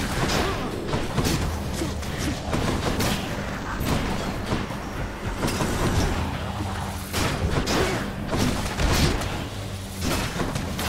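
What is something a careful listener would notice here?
Game music plays with a steady low beat.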